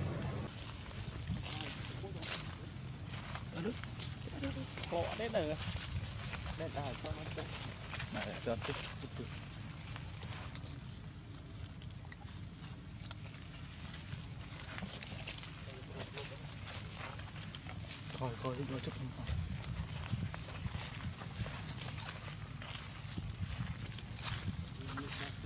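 A monkey's footsteps rustle on grass and dry leaves.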